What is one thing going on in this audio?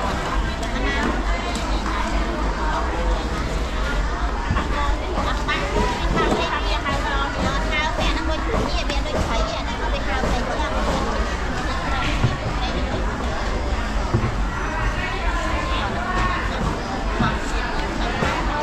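Many voices chatter nearby outdoors.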